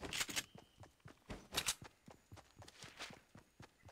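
Footsteps pad across grass.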